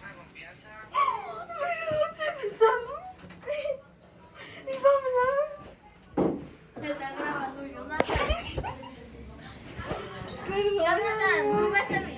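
A boy talks loudly nearby.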